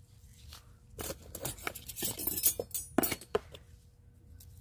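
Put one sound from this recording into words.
Gritty potting soil rustles and crunches as gloved hands work it.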